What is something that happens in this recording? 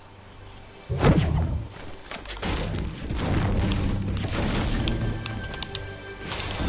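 A pickaxe strikes roof shingles with loud, repeated whacks.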